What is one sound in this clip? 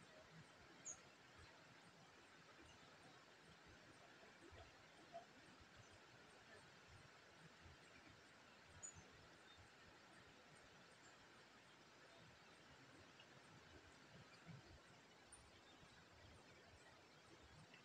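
Small birds chirp softly now and then outdoors.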